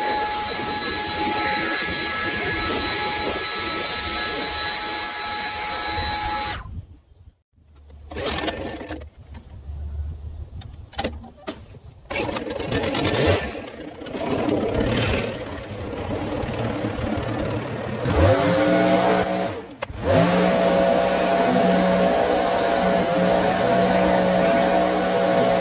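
A leaf blower engine roars loudly close by.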